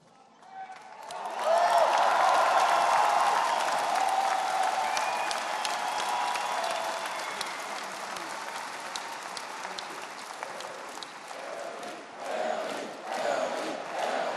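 A crowd applauds and cheers loudly.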